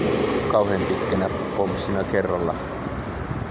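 A middle-aged man talks calmly, close to the microphone.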